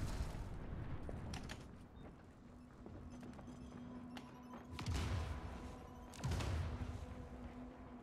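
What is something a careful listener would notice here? Heavy footsteps approach across a metal walkway.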